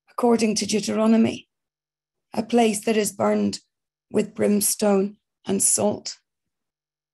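A middle-aged woman speaks calmly and close to the microphone, as if over an online call, then falls silent.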